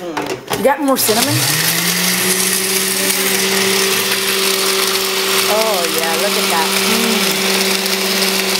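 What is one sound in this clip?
A blender whirs loudly and steadily.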